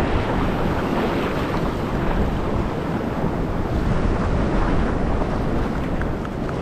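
Waves wash and fizz over a sandy shore close by.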